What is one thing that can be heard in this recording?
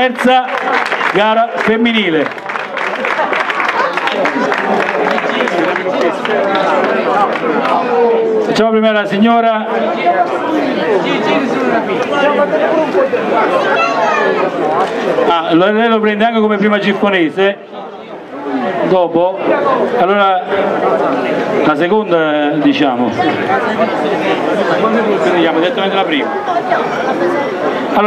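A man speaks into a microphone over a loudspeaker, announcing with animation.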